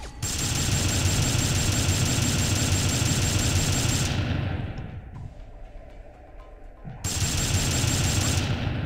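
Twin cannons fire in a rapid, roaring stream of shots.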